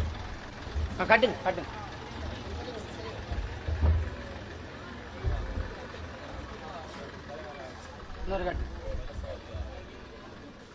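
A man speaks into a microphone with animation.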